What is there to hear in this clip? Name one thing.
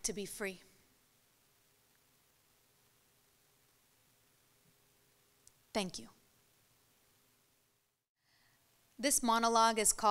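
A young woman recites slowly and expressively into a microphone, with long pauses.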